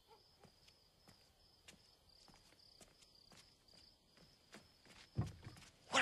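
Footsteps walk slowly on stone.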